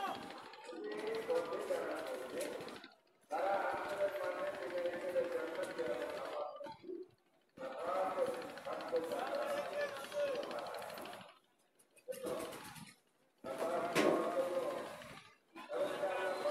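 Several men talk loudly nearby in short bursts.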